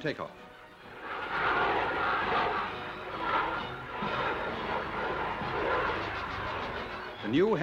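A jet aircraft roars overhead.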